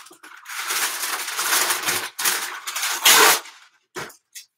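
Plastic packaging rustles and crinkles close by.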